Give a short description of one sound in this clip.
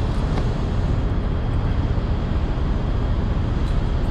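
A strap slaps and rattles as it is flung.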